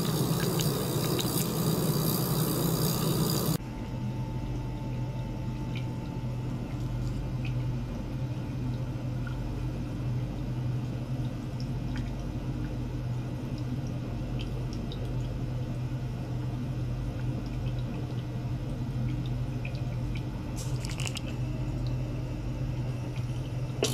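A small machine hums steadily.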